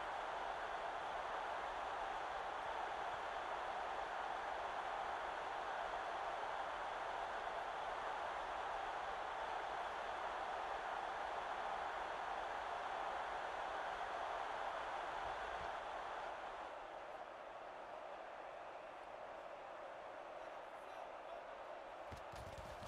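A large stadium crowd roars steadily, then grows quieter.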